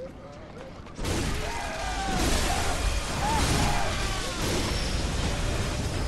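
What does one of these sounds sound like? Blades clash and slash in a fight.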